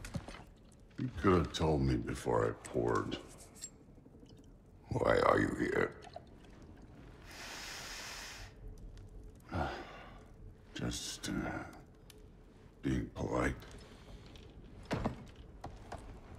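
A deep-voiced man speaks gruffly and casually nearby.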